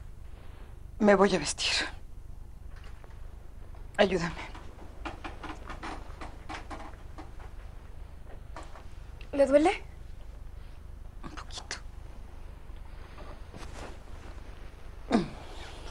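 A young woman speaks with strong emotion, close by.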